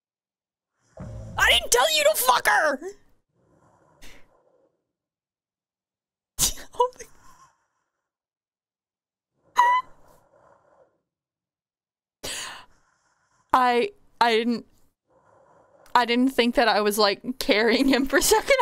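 A young woman talks animatedly into a close microphone.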